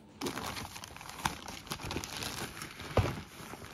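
Clothes rustle as they are packed into a suitcase.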